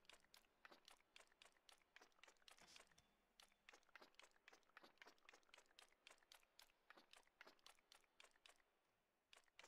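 Small footsteps tap quickly and steadily in a game.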